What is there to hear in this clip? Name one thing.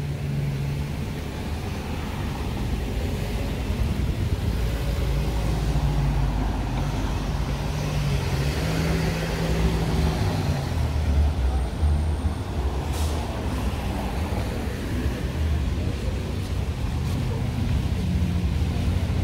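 Cars drive past on a nearby street with a steady low rumble.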